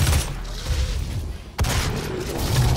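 A heavy gun fires.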